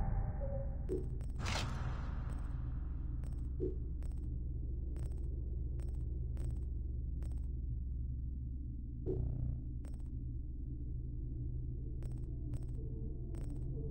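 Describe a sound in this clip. Menu clicks tick sharply, one after another.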